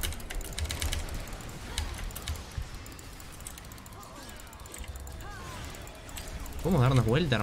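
Keyboard keys and a mouse click rapidly.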